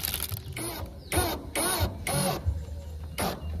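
A cordless drill whirs in short bursts, driving a screw into metal.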